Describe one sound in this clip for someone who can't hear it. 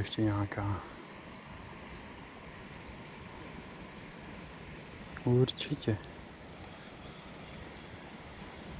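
A river flows gently.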